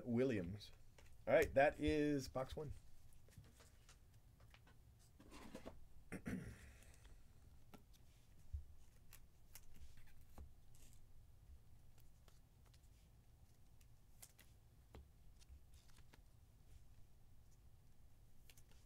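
Trading cards rustle and click softly as hands handle them.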